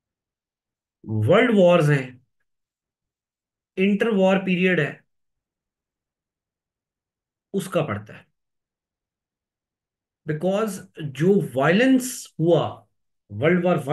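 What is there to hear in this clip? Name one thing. A man speaks calmly into a close microphone, in short phrases with pauses.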